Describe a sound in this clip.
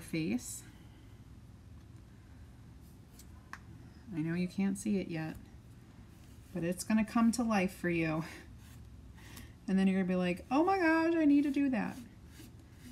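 A woman talks calmly and clearly into a close microphone.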